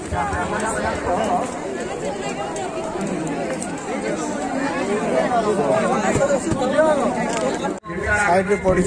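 A crowd of people chatters noisily all around.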